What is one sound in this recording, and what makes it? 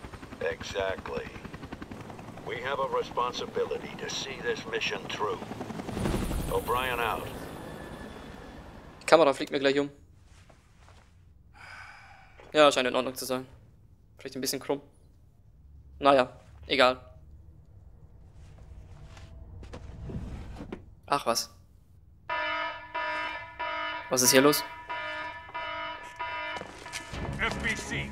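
A young man speaks through a headset microphone.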